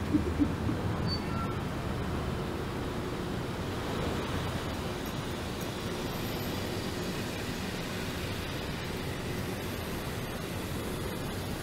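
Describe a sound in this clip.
Footsteps tap on a sidewalk.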